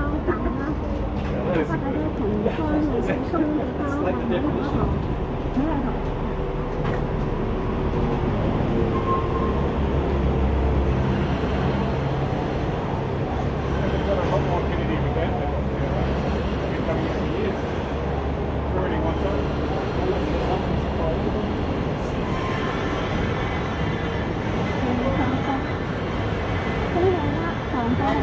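City traffic rumbles steadily in the background.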